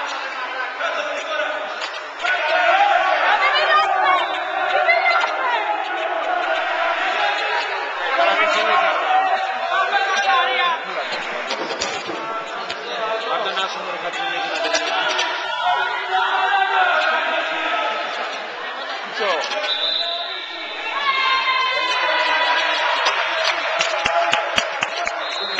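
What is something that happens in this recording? A crowd of young women and spectators shout and cheer in a large echoing hall.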